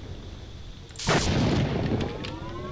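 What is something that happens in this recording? A bullet strikes with a sharp crack and burst.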